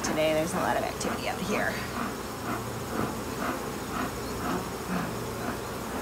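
A bee smoker puffs air in short bursts.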